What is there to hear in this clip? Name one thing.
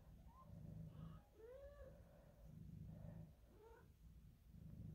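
A kitten mews in high, short cries.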